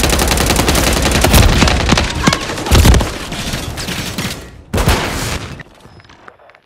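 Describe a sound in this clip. Rapid gunfire rattles loudly, close by.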